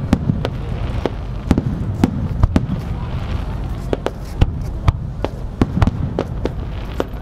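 Fireworks burst with loud booms and crackles, outdoors in the open air.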